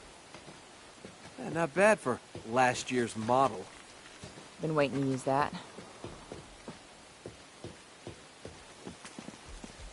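Footsteps patter on wooden planks.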